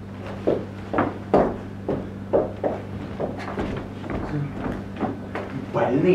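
Footsteps thud on a wooden stage floor.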